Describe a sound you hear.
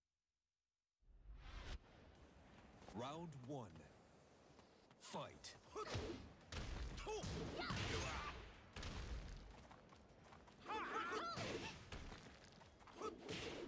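Punches and kicks land with heavy thuds and whooshes.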